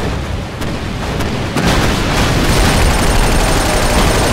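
A tank engine rumbles low.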